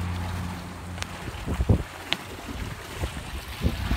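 Water splashes and churns close by.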